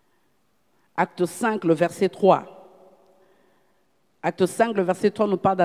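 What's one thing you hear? A middle-aged woman speaks calmly into a microphone, heard over a loudspeaker in a reverberant hall.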